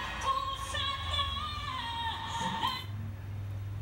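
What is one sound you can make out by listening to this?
A woman sings through a television speaker with music.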